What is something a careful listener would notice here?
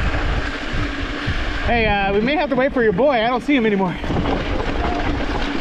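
Bicycle tyres roll and crunch over a rocky dirt trail.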